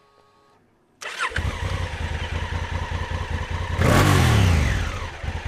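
A motorcycle engine cranks and starts, then idles with a rough rumble close by.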